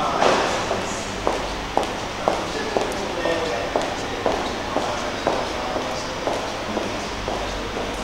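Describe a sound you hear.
Footsteps tap on a hard floor in a large echoing hall and fade away.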